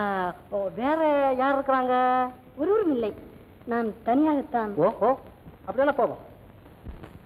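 A woman speaks with animation in a high, sing-song voice.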